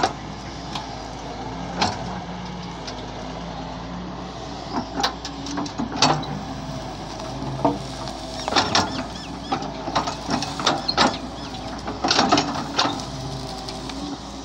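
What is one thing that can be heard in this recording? An excavator engine rumbles steadily outdoors.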